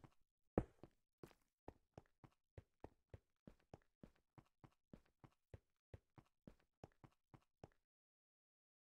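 Footsteps tap quickly up stone stairs.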